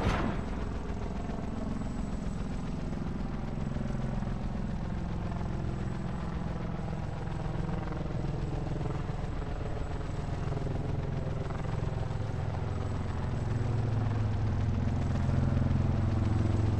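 Helicopter rotors thump and whir steadily.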